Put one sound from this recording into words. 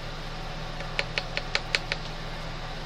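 A stick clicks lightly against a small plastic cup.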